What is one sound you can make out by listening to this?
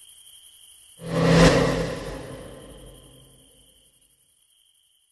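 A sudden loud screeching blast erupts and then fades away.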